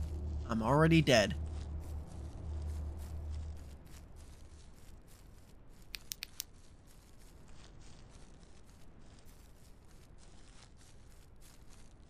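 Footsteps crunch through dry leaves and grass.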